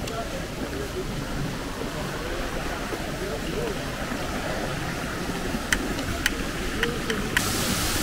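Women chat quietly in the distance.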